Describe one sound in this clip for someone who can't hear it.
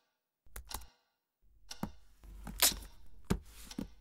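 A man taps on a laptop keyboard.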